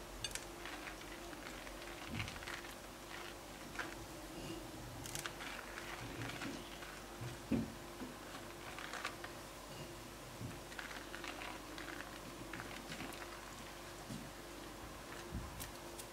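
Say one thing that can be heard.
Crumbs patter softly as a hand sprinkles them into a dish.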